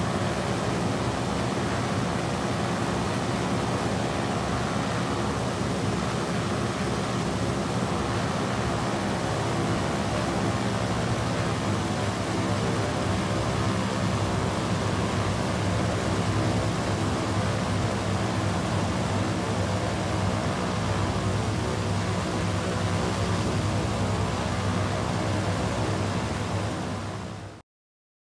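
Propeller engines drone steadily at close range.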